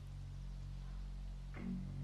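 A young man bites into a burger with a soft crunch.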